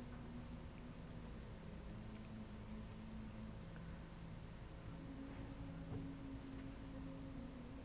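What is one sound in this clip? An elderly man reads aloud slowly and calmly into a microphone.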